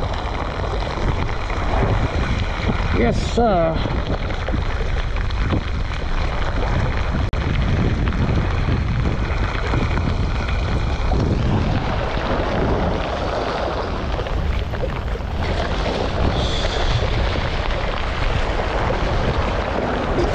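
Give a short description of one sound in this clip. A fishing reel clicks as it is cranked.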